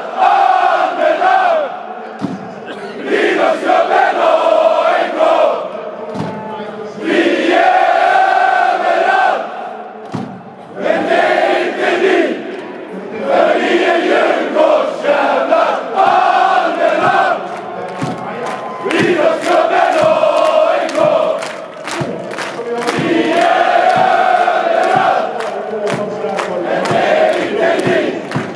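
Fans clap their hands.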